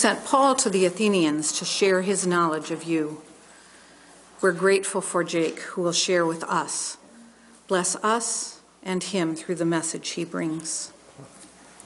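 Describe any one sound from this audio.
An elderly woman reads out calmly through a microphone.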